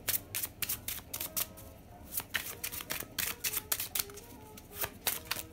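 Playing cards are shuffled with quick flicking clicks.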